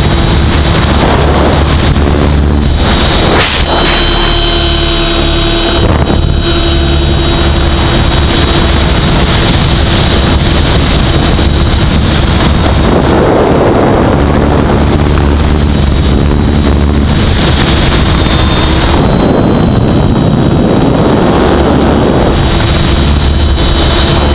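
Rotor blades whir and buzz close by.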